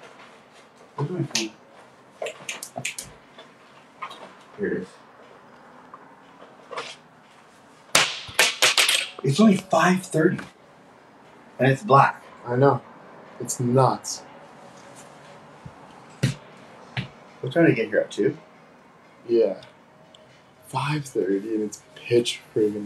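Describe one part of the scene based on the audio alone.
A young man speaks close by, in bursts with pauses.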